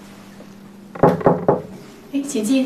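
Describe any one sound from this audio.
A middle-aged woman knocks on a door.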